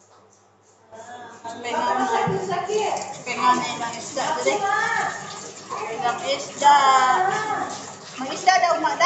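Tap water runs and splashes.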